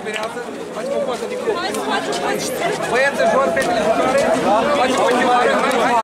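A crowd of men and women talks and chatters loudly outdoors.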